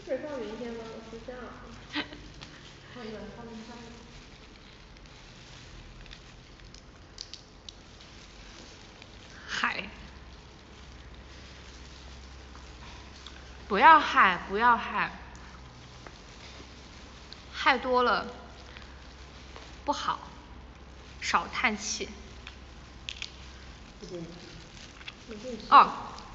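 A young woman talks softly and close by, in short bursts with pauses.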